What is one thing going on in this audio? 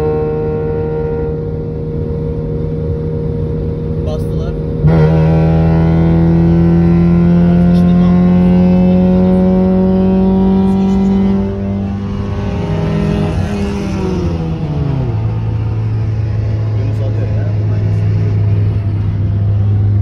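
Tyres roar on a highway.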